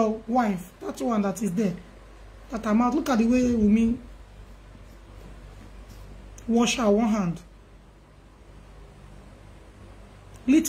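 A woman speaks calmly and close to a microphone, in short phrases with pauses.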